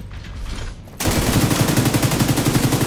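A machine gun fires in rapid bursts, loud and close.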